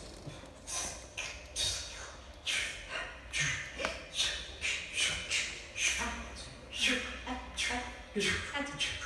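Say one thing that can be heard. A man makes rhythmic, breathy beatbox sounds into a microphone.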